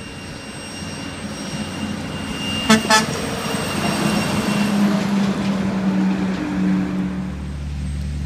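A heavy truck engine roars as it drives by.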